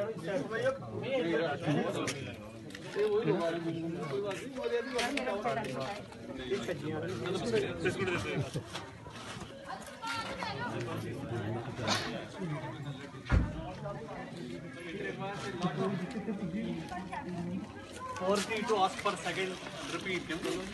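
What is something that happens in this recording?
Men and women talk nearby outdoors.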